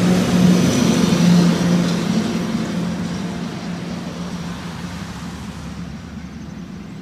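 A heavy truck engine rumbles past on a road.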